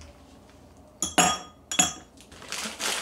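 Ice cubes clink into a glass.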